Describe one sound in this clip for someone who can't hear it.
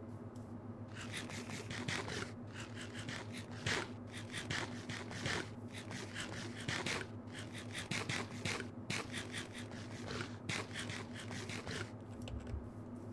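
Footsteps crunch steadily on snow.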